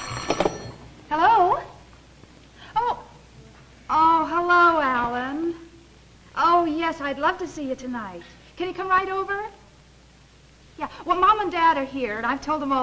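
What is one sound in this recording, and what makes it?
A young woman talks brightly into a telephone close by.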